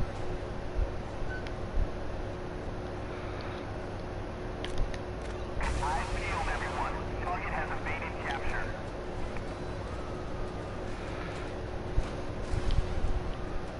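Car engines hum steadily in city traffic.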